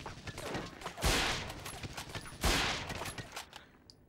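Rifle shots fire with a loud crack.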